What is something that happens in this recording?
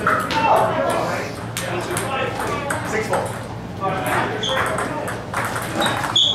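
Ping-pong balls click sharply against paddles and tables.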